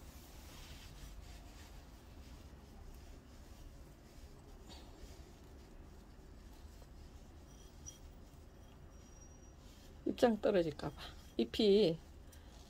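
Fingers softly brush against plump plant leaves.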